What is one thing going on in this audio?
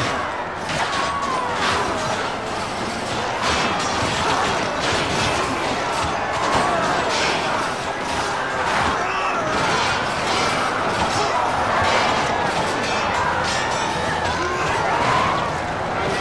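Swords clash and strike repeatedly in a battle.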